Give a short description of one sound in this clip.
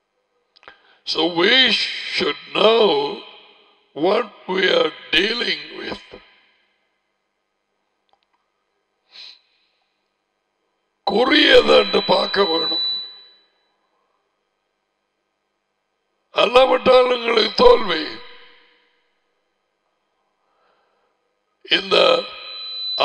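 An elderly man speaks with animation into a close headset microphone, with long pauses.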